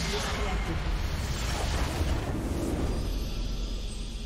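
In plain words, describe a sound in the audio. A game's crystal shatters with a loud magical blast.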